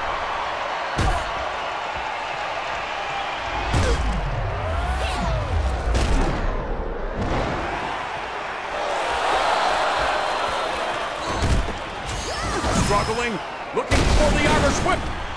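Heavy body slams thud on a wrestling ring mat.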